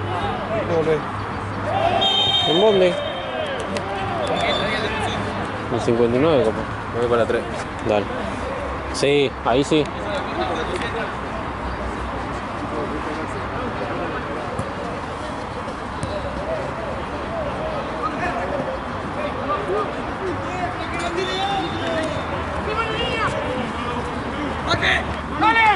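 Several men shout and call out outdoors.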